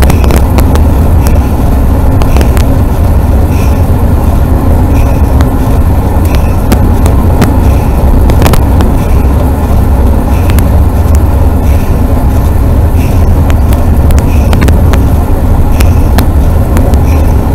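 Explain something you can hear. A shell rattles and clicks over bumps in the road.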